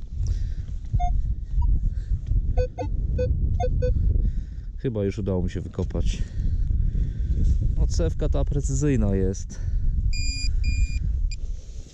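A metal detector beeps in short electronic tones.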